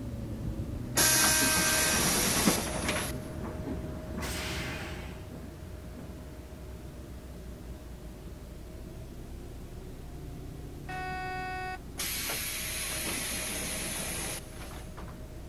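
Air hisses loudly from a bus's brakes and doors.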